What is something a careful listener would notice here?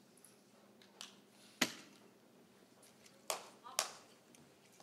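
Darts thud sharply into a dartboard.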